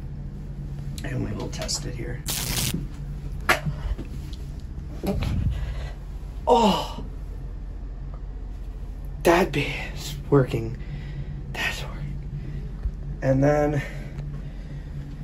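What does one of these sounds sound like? A young man talks close by, in bursts and with animation.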